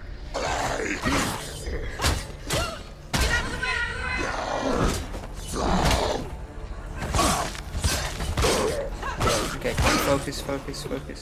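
Swords clash and swish in quick strikes.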